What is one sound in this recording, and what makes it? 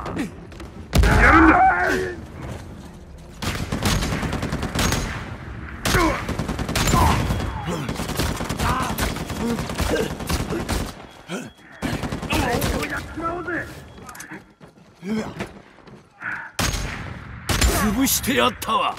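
Sniper rifle shots crack with loud echoing bangs.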